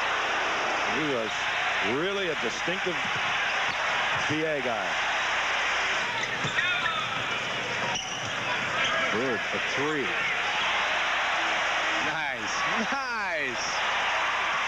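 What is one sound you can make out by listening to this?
Sneakers squeak sharply on a wooden court.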